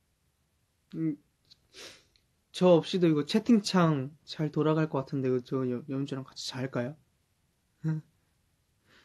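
A young man talks calmly close by.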